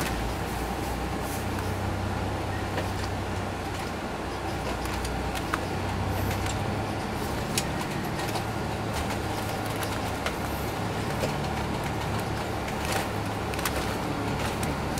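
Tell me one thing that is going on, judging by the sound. Loose fittings inside a bus rattle and click over bumps.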